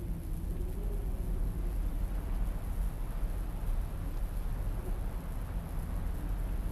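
A low wind rumbles steadily outdoors.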